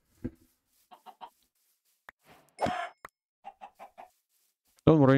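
Chickens cluck.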